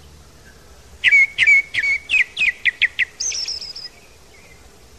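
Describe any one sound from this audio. A small bird calls with quick, sharp chirps close by.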